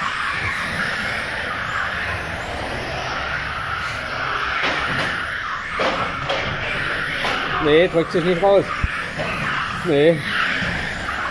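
Small electric model cars whine and buzz as they race around.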